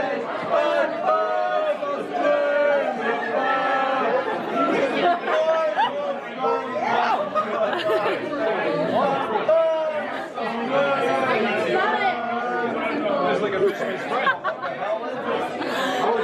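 A group of young people cheer and chatter loudly in a lively room.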